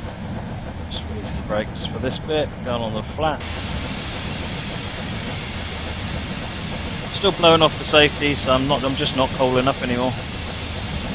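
A steam locomotive whistle blows in short bursts.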